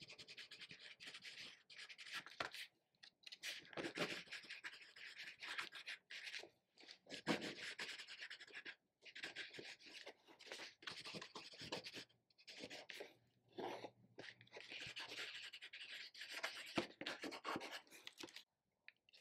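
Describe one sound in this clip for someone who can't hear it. A tool scratches and scrapes across paper in short strokes.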